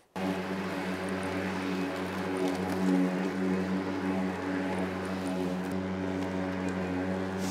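A petrol lawn mower engine runs with a steady drone.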